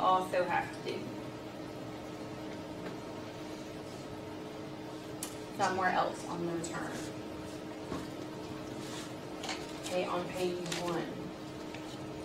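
A young woman speaks calmly to a room, in short bursts.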